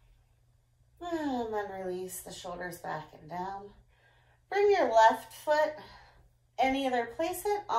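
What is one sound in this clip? A young girl talks with animation close by, in short bursts.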